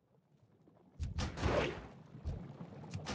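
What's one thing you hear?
Metal weapons clash in a fight.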